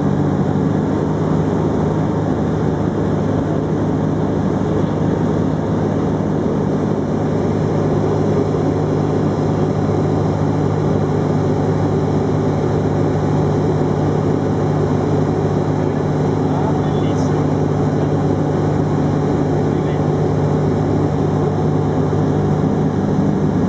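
A small plane's engine drones steadily up close, heard from inside the cabin.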